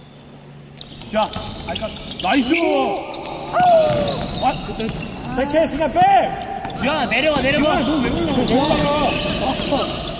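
Sneakers squeak on the court.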